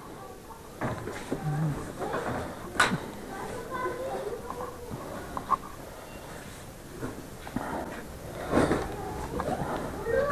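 Heavy fabric rustles as a cover is pulled off.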